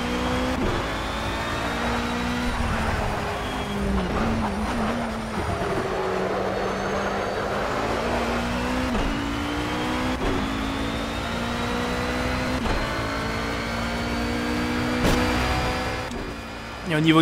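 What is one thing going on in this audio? A racing car engine roars steadily at high speed, rising and dropping in pitch as it shifts gears.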